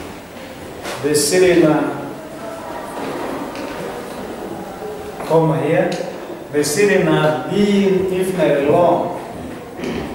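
A man speaks in a slightly echoing room.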